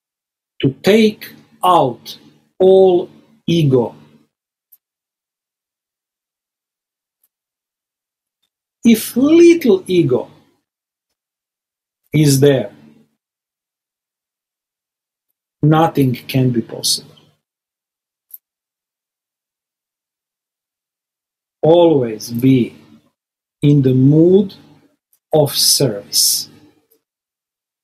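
An older man speaks calmly in short phrases over an online call.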